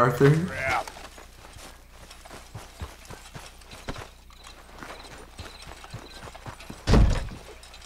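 Boots run on dirt with quick, even footsteps.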